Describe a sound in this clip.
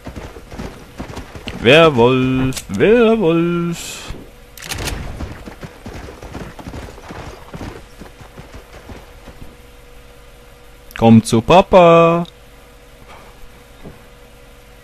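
Horse hooves thud softly on snowy ground.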